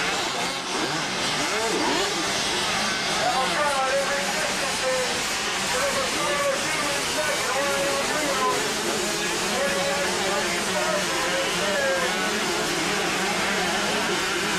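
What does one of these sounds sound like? Two-stroke dirt bikes rev hard over jumps.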